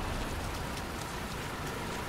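A bus engine hums as it approaches.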